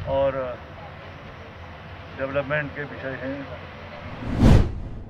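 An elderly man speaks into microphones outdoors.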